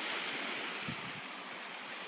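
Small waves lap gently on a shore.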